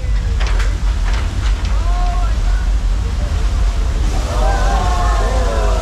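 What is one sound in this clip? Floodwater surges and roars through a street.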